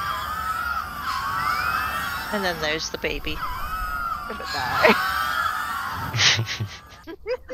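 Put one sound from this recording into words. Small creatures chirp and squeal in quick, high calls.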